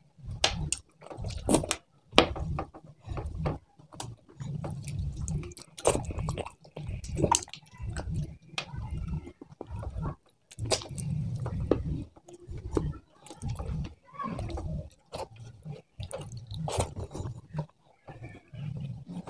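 Fish bones crack and crunch between fingers.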